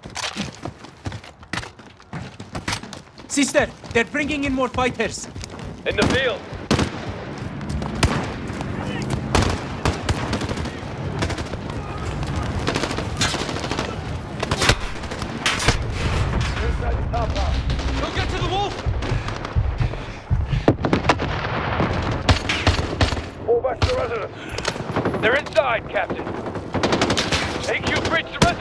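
Gunshots crack repeatedly, sharp and loud.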